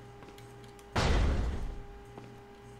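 A heavy door swings open with a low rumble.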